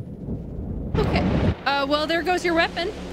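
A woman laughs loudly close to a microphone.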